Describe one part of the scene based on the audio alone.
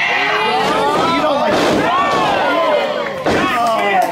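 A body slams onto a wrestling mat with a thud.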